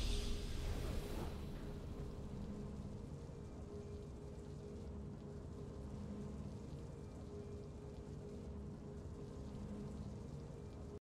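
Soft, steady triumphant music plays.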